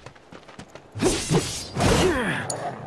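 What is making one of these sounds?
Metal clangs with crackling sparks.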